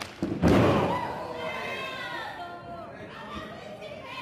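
Spectators shout and cheer nearby.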